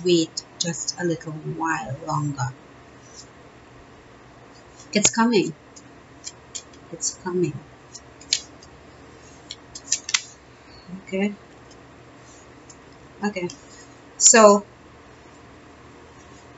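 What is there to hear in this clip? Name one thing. Playing cards rustle and flick softly as a deck is shuffled.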